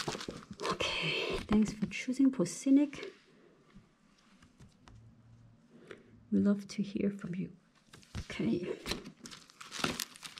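A cardboard booklet is shuffled and flipped.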